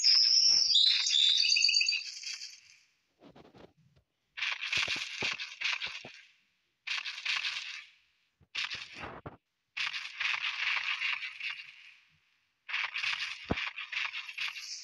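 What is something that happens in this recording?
A large creature's footsteps crunch through brush at a steady walk.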